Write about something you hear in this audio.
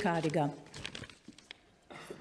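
A woman speaks into a microphone in a large echoing hall.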